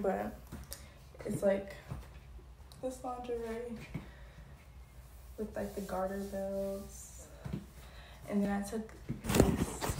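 A young woman speaks softly and playfully, close by.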